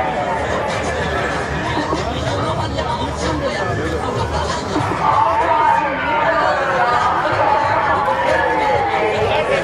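A crowd of young men chants and sings loudly outdoors.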